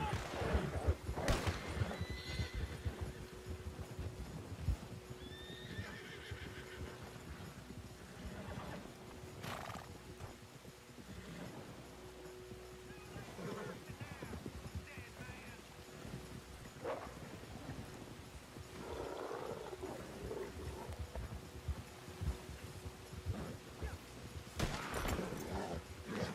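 Horse hooves crunch through snow at a steady pace.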